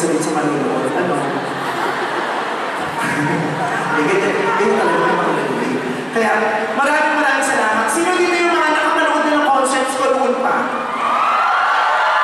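A man talks with animation into a microphone over loudspeakers in a large hall.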